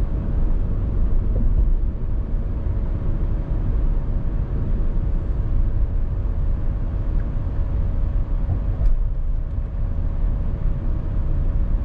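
Tyres roll steadily over a road.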